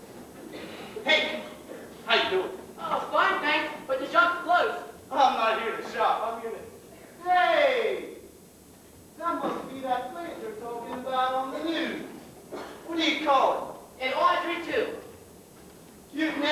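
A young man speaks loudly with animation, heard from a distance in an echoing hall.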